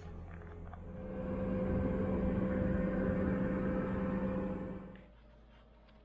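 A fire roars steadily in a stove.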